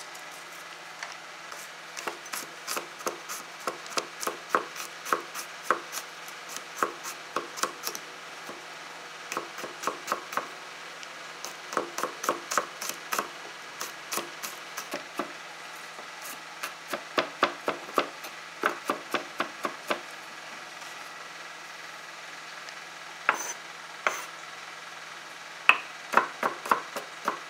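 A knife chops quickly on a wooden cutting board in quick bursts of knocks.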